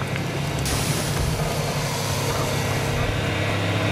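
A large creature grunts nearby.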